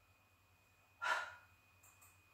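A middle-aged woman breathes out a short puff of air.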